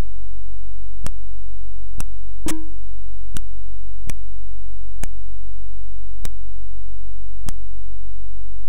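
A runner's steps tick as sharp, evenly spaced electronic clicks.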